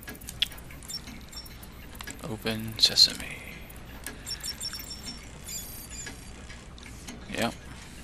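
An electronic device beeps and chirps.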